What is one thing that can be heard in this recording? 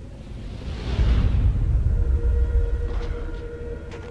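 A man lands on the ground with a heavy thud.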